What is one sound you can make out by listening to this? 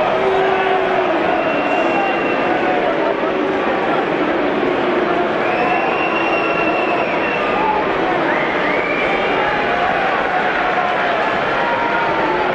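A large stadium crowd chants and sings loudly in the open air.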